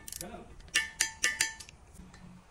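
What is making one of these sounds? A torque wrench clicks as it tightens a bolt in an aluminium engine block.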